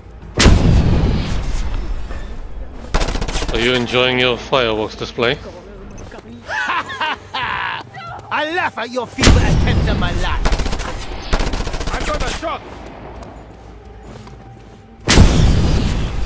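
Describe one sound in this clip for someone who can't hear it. Loud explosions boom.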